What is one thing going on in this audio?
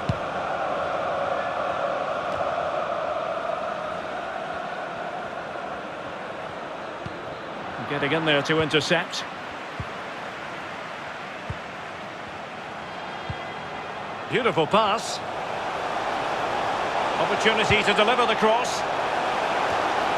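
A large stadium crowd murmurs and roars steadily.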